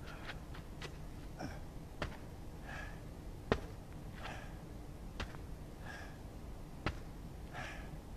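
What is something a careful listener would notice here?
Hands slap down on the ground.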